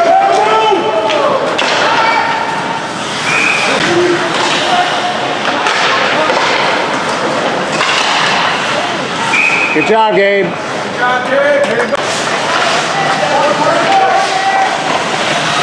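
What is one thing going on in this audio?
Teenage players shout across an echoing rink.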